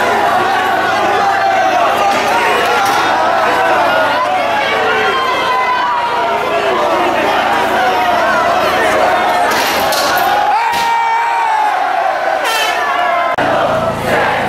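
Many young people talk and shout over one another close by.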